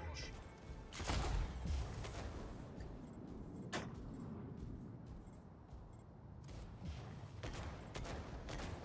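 Guns fire in rapid bursts and blasts boom.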